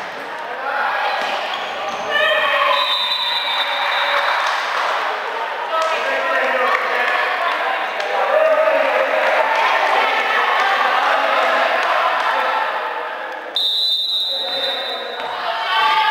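Young women players shout to each other in an echoing hall.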